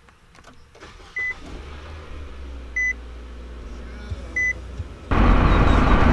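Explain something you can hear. A car engine starts and idles with a low hum.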